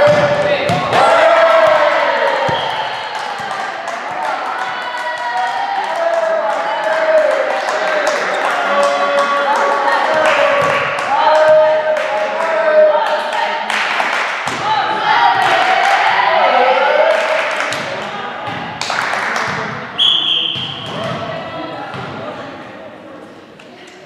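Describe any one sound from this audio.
A volleyball smacks against hands and arms with sharp slaps.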